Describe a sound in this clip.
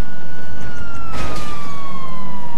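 A car crashes with a loud bang and scraping.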